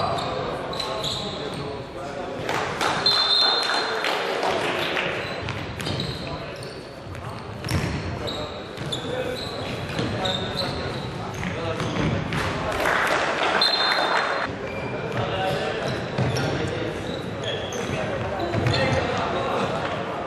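Players shout to each other, echoing in a large hall.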